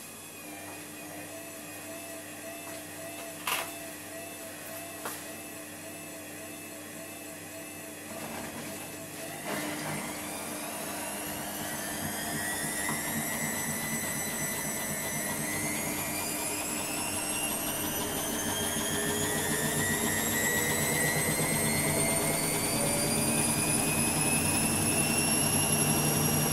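A washing machine hums quietly.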